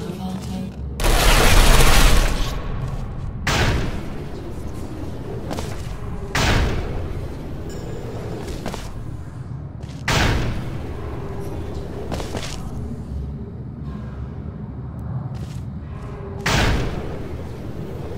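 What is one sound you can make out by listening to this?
A portal gun fires with a sudden whooshing burst, several times.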